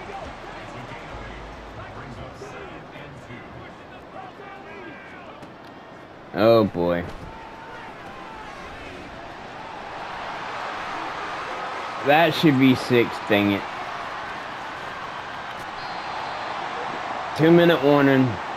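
A stadium crowd cheers and roars in a large open space.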